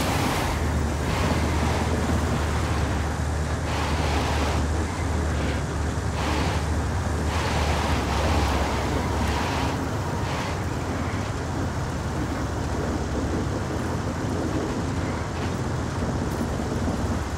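A heavy vehicle engine rumbles steadily as it drives along a road.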